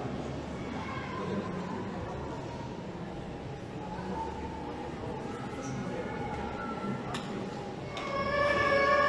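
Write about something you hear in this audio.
A woman speaks calmly into a microphone, heard through loudspeakers in a large echoing hall.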